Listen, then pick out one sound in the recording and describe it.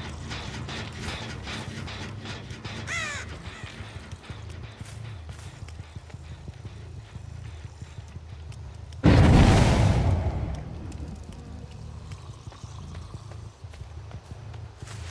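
Heavy footsteps thud steadily on grass and pavement.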